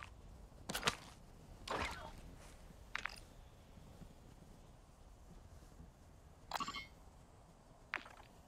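Short game menu sounds click and whoosh as menus open.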